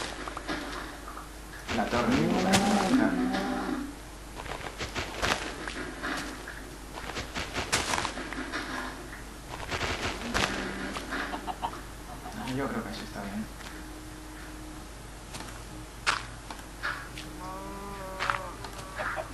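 Blocks of dirt crunch repeatedly as they are dug out.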